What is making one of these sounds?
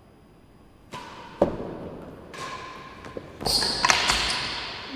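A racket strikes a ball with a sharp crack.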